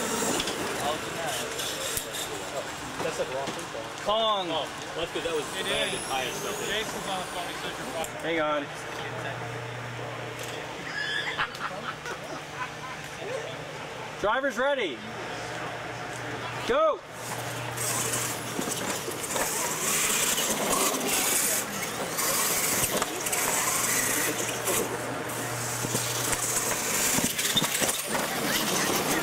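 Electric motors whine as small radio-controlled trucks race over dirt.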